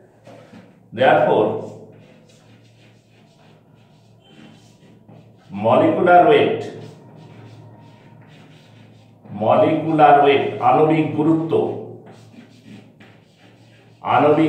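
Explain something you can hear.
A middle-aged man speaks in bursts, calmly explaining, close by.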